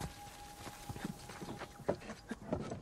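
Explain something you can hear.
Hands and boots knock on a wooden ladder while climbing.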